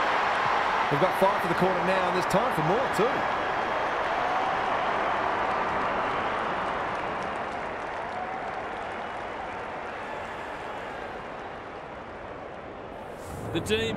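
A large stadium crowd roars and cheers, slowly fading.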